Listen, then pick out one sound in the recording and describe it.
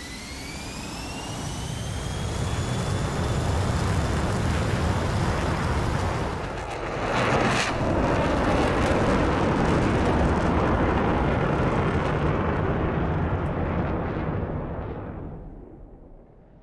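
A jet engine roars loudly, then fades away.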